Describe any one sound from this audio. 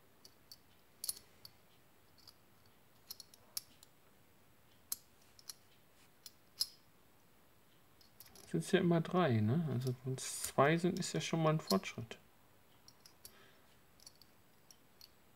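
Small metal pieces click and clink against each other.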